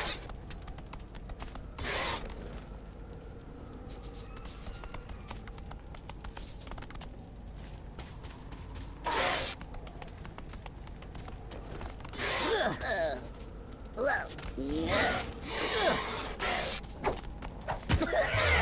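Small footsteps patter on wood and stone.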